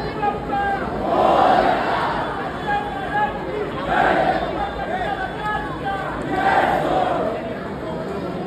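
A crowd roars in loud bursts.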